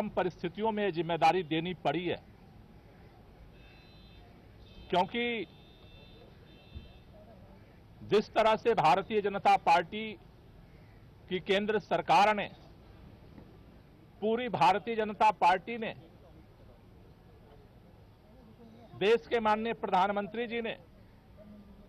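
A man speaks calmly into microphones in short bursts, with pauses between.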